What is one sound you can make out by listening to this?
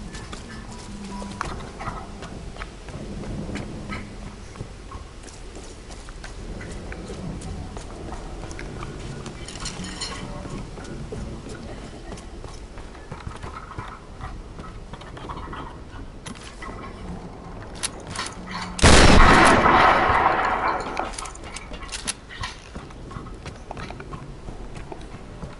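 Footsteps crunch steadily on dirt and wooden boards.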